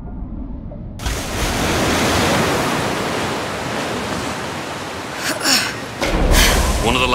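Water rushes and splashes loudly.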